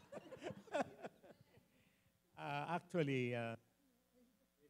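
A group of adults laugh together near a microphone.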